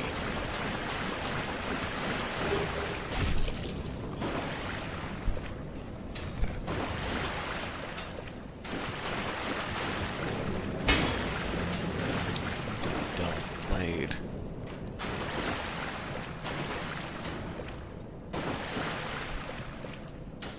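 Armoured footsteps clank on stone in an echoing corridor.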